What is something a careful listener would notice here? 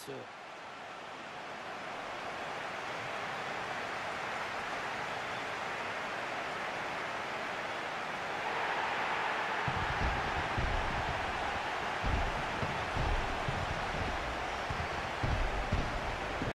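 A large stadium crowd cheers and roars steadily.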